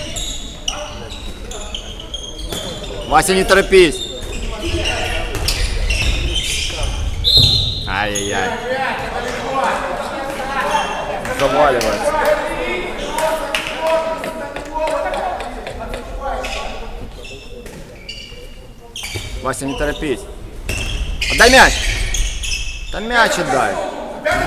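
A handball bounces on a wooden floor.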